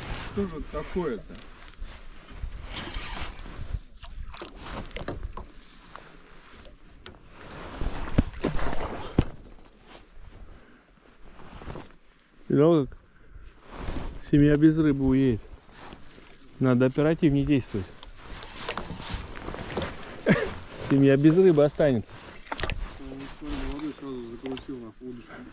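Wind blows across open water.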